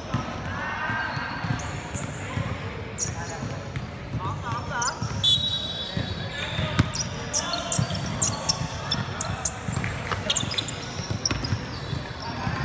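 A basketball bounces on a wooden court in an echoing hall.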